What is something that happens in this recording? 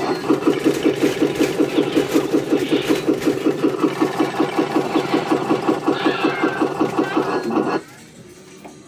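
A slot machine beeps in a fast, steady electronic rhythm, then stops.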